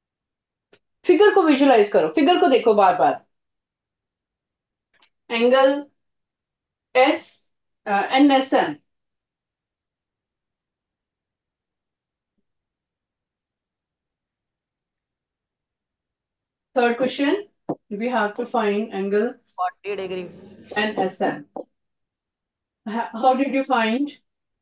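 A woman lectures through a microphone in short bursts, with pauses between.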